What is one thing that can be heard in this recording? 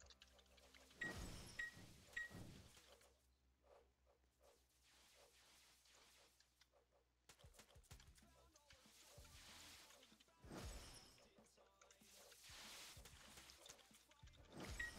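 Magic spells burst and whoosh in a game.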